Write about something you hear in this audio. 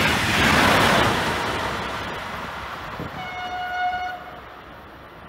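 A passenger train rushes past close by and fades into the distance.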